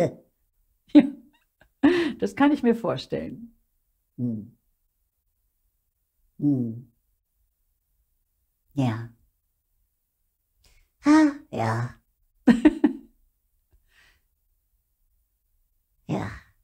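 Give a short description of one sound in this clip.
An older woman speaks in short, lively bursts close to a microphone.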